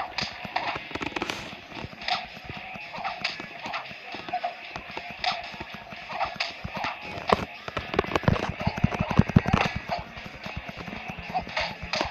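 Swords clash and whoosh in a fast fight.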